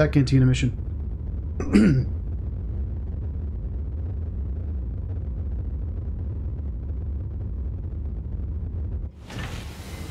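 A spaceship engine rumbles low and steadily, then cuts off.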